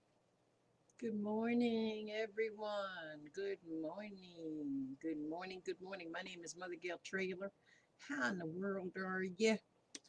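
An elderly woman speaks with animation, close to a microphone.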